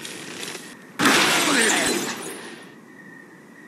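A cartoon bird squawks as it is launched through the air.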